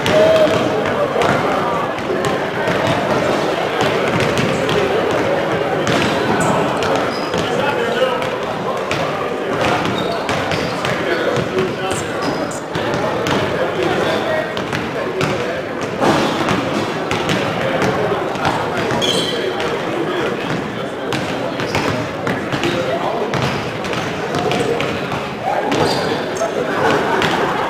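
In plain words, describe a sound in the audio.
A small crowd murmurs and calls out in the stands.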